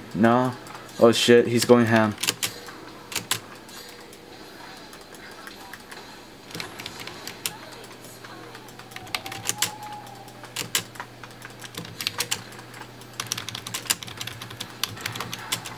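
Fast clicks, zaps and blasts of video game combat play in short bursts.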